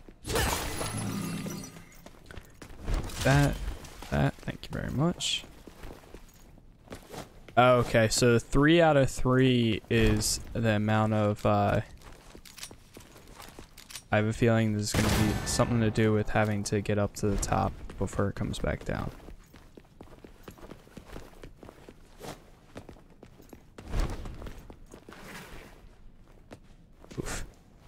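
Sword slashes and impacts ring out sharply.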